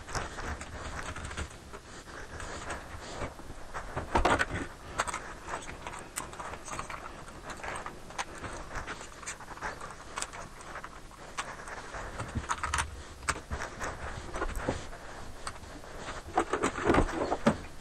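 Metal parts clink and rattle as a stand is handled.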